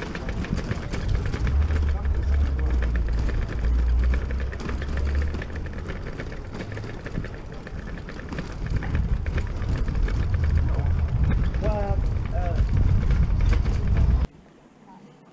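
Bicycle tyres rattle over cobblestones.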